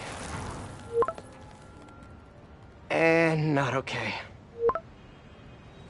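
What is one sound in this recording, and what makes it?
A short electronic chime sounds as a message arrives.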